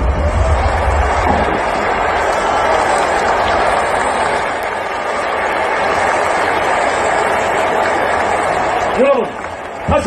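Fireworks crackle and pop loudly outdoors.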